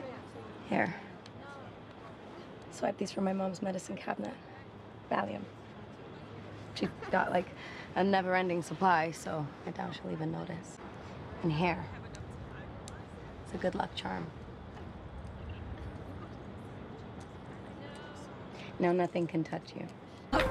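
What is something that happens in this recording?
A second young woman answers softly.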